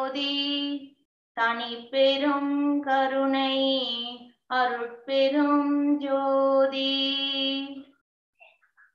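A young child sings through an online call.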